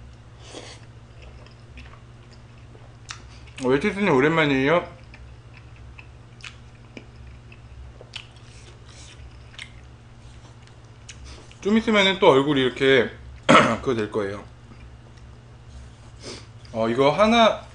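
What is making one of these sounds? A young man chews and slurps food noisily.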